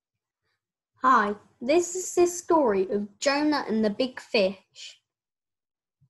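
A young boy speaks calmly and clearly, close to the microphone.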